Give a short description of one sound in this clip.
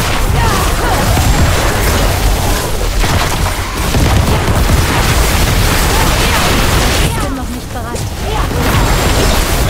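Magic spells crackle and explode in rapid bursts.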